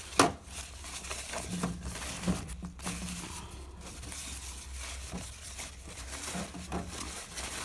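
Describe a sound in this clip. Paper crinkles and rustles under a hand.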